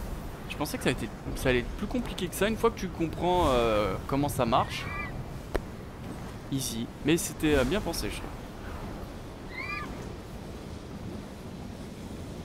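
Wind rushes steadily past a gliding winged figure.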